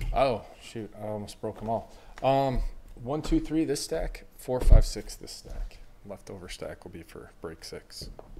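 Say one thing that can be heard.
Cardboard boxes slide and knock against each other.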